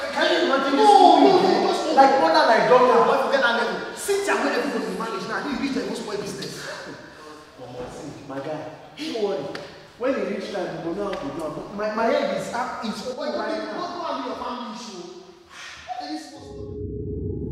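A young man shouts angrily nearby.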